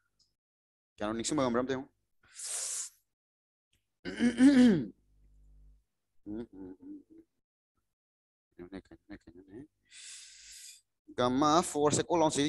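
A young man speaks calmly into a close headset microphone, in short bursts with pauses.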